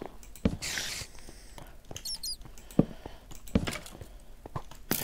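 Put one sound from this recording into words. Footsteps tap on stone floor.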